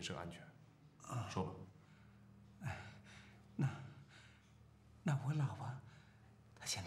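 Another man answers in a low, subdued voice close by.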